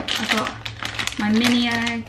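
A wrapper crinkles in a woman's hands.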